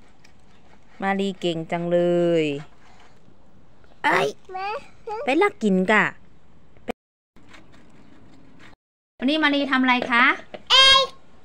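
A young girl talks and exclaims close by.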